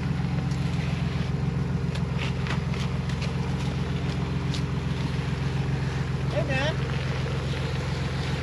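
Tyres crunch and scrape on rock.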